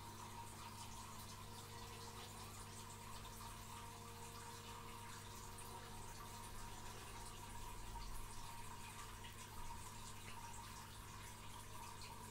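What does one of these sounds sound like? An aquarium pump hums steadily close by.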